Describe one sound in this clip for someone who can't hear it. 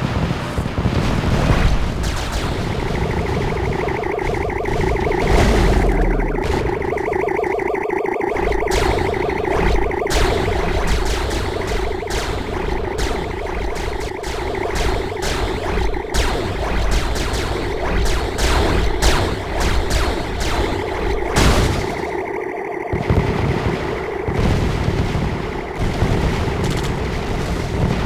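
Gunfire sound effects crackle in a video game.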